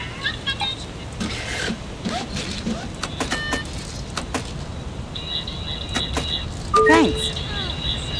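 A ticket machine's buttons click.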